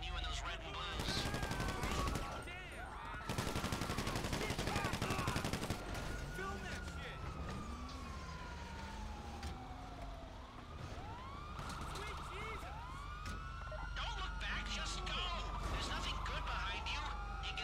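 Police sirens wail and rise and fall.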